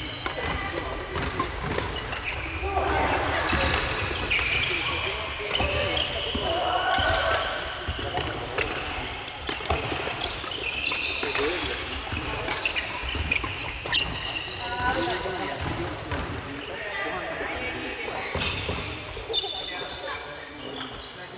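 Badminton rackets hit shuttlecocks in a large echoing gym.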